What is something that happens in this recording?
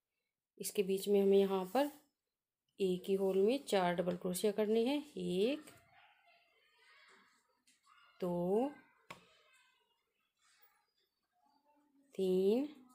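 Yarn rustles softly as a crochet hook pulls it through.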